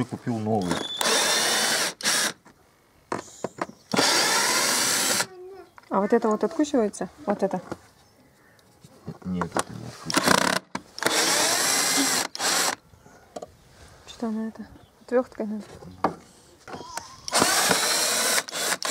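A cordless impact driver whirs and rattles in short bursts.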